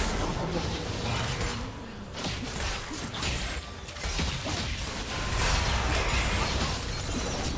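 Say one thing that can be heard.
Fantasy game spells whoosh and blast during a fight.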